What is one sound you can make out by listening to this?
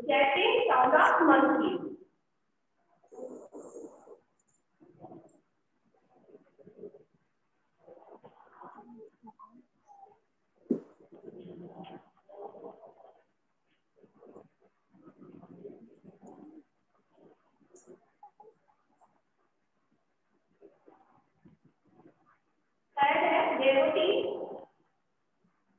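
A woman speaks clearly, as if teaching a class.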